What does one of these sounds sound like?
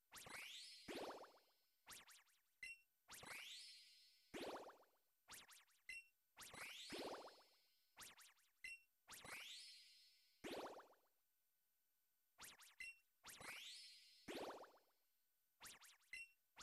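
A video game plays bright, rising electronic jingles and short blips in repeated bursts.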